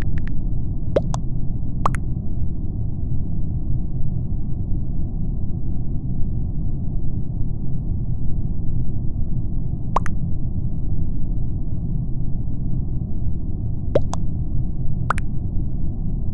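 Short electronic chimes pop now and then.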